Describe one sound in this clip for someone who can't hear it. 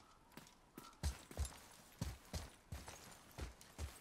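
Heavy footsteps crunch over snowy ground.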